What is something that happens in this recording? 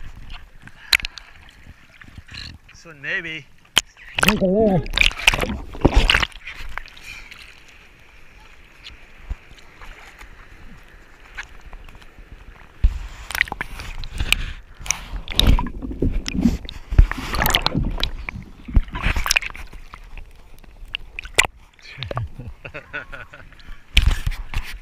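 Small waves lap against a surfboard close by.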